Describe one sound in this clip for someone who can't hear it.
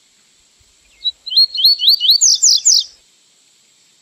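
A small bird sings a quick series of rising whistled notes, then a few sharp falling trills.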